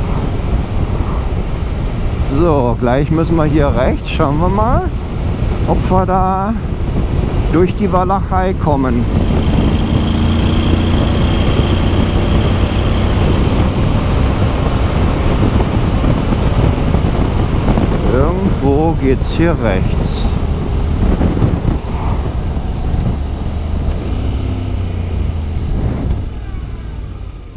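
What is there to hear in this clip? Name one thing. Wind roars steadily past at speed.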